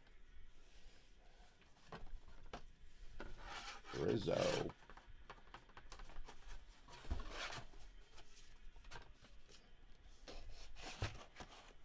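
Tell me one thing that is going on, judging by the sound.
Paper and cardboard rustle as they are moved.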